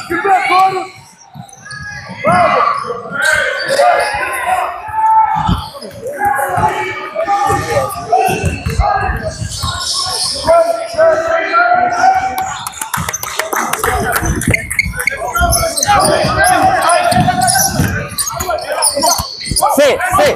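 A crowd of spectators talks and cheers in a large echoing gym.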